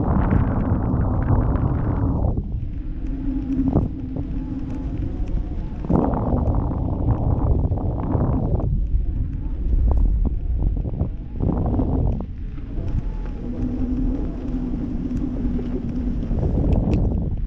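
Strong wind buffets loudly, rising and falling in gusts.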